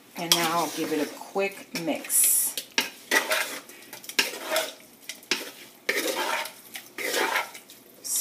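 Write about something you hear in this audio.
Pieces of food squelch and rustle as a hand tosses them in a metal bowl.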